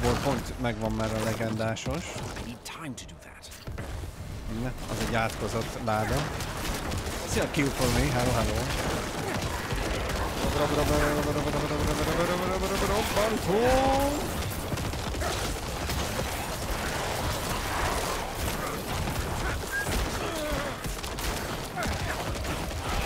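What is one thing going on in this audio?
Game combat effects crash and clash.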